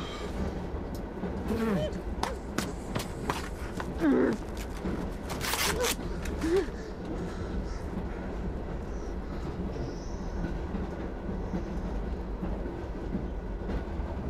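A large poster rustles and crackles as it is handled.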